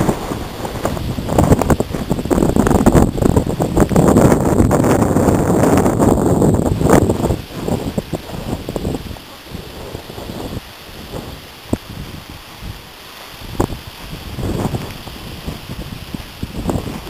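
Strong wind gusts buffet the microphone outdoors, then ease.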